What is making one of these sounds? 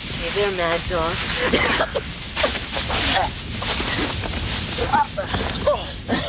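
Young men shout and grunt as they scuffle.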